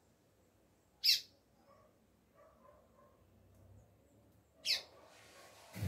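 A double-collared seedeater gives short sharp calls.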